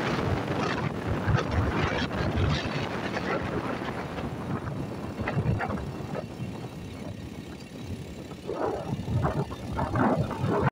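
Car tyres hiss on a wet road.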